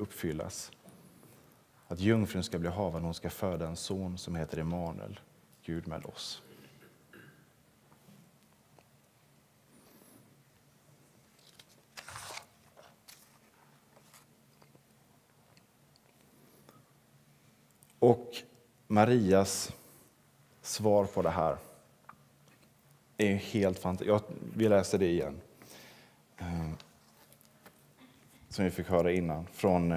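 A young man speaks calmly into a microphone in a large room, pausing between phrases.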